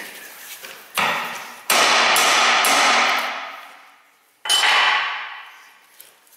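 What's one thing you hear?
A hammer strikes metal with ringing clangs.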